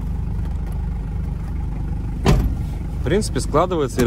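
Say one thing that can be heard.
A car seat folds down with a clunk of its latch.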